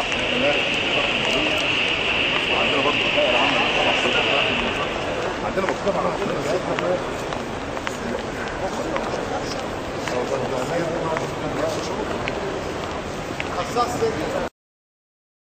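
A crowd of men and women murmur and talk nearby in a large echoing hall.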